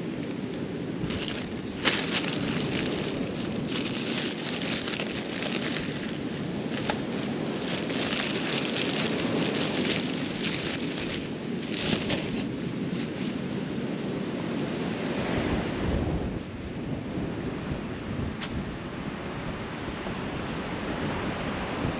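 Waves break and wash onto a sandy beach.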